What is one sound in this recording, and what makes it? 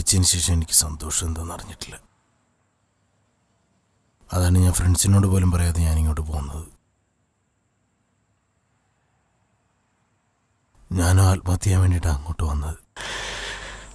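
A man speaks quietly and tensely, close by.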